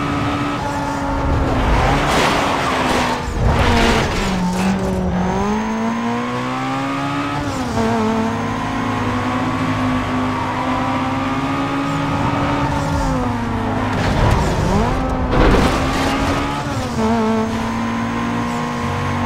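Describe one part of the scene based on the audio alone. A racing car engine roars steadily, rising and falling in pitch as the gears shift.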